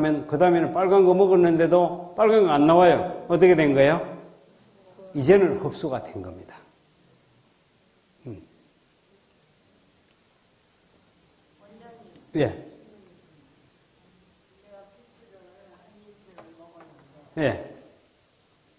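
A man speaks calmly into a microphone, heard through a loudspeaker in a large room.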